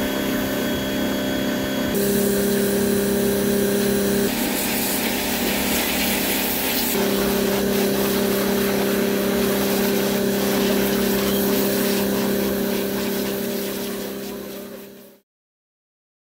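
A pressure washer sprays water with a steady hiss.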